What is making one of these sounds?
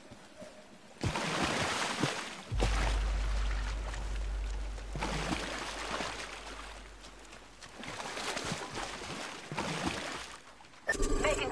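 Footsteps run over the ground.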